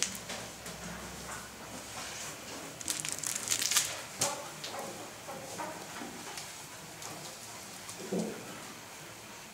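A puppy's claws tap and click on a hard floor.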